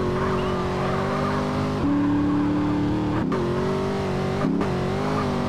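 A car engine drones steadily, its pitch dropping and rising as it shifts gears.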